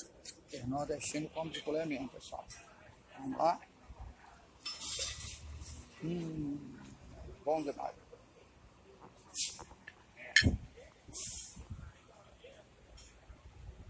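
A fork clinks and scrapes against a plate.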